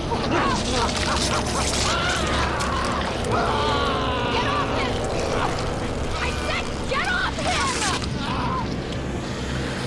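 A creature shrieks and screeches loudly.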